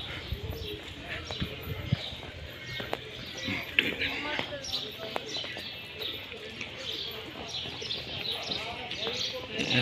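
Footsteps scuff on a stone path.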